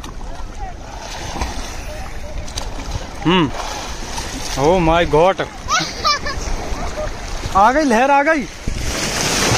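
Shallow waves wash and swirl steadily outdoors.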